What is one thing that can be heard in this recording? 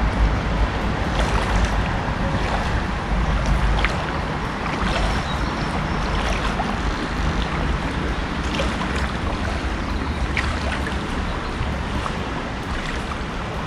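Water splashes softly around a man's legs as he wades through a shallow river.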